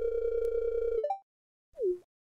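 A short game chime sounds as a dialogue box closes.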